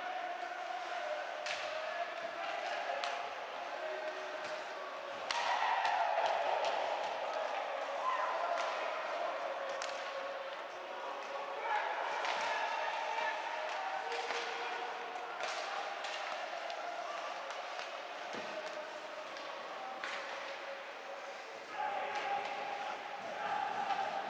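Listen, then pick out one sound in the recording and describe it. Skates scrape and carve across ice.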